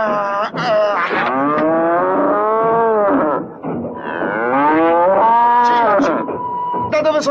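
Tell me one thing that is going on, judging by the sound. A cow moos loudly and long.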